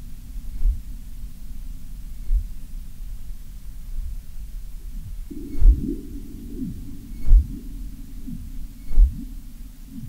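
Game blocks drop into place with short low thuds.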